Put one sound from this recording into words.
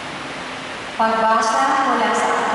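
A woman sings through a microphone in an echoing hall.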